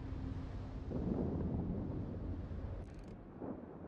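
Heavy naval guns fire with a deep boom.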